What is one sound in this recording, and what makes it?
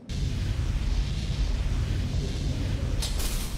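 A sharp whooshing dash sound plays.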